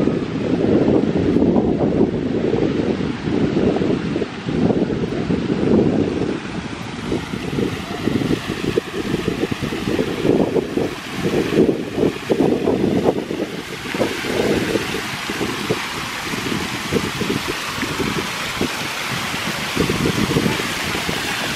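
Wind blows and buffets loudly outdoors.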